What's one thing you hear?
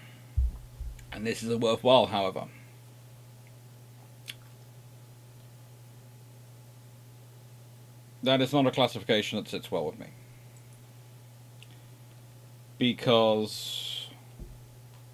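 A man speaks calmly into a microphone, heard as if over an online call.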